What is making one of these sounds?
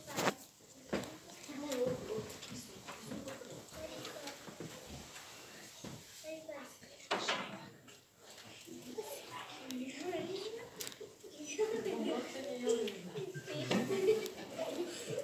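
A group of children sings together in an echoing hall.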